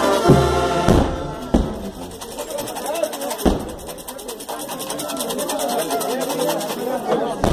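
A brass band plays loudly outdoors.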